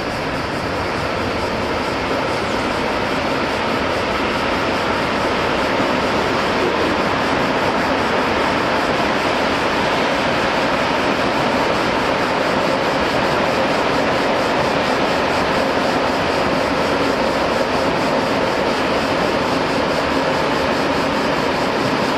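Freight wagons' wheels clatter and rattle on the rails.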